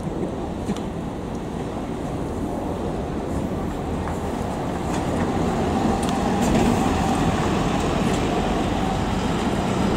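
A diesel city bus drives past and turns.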